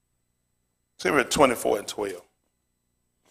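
A man speaks briefly with animation through a microphone.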